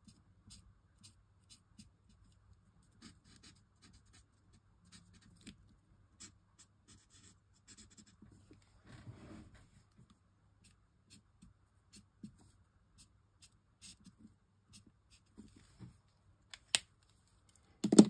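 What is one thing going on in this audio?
An alcohol marker scratches softly across card.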